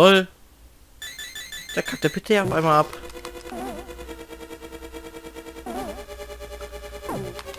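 Cheerful chiptune game music plays steadily.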